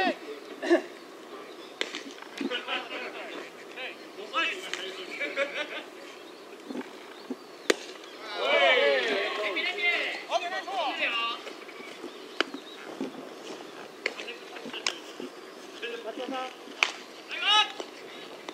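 Young men shout encouragement across an open field.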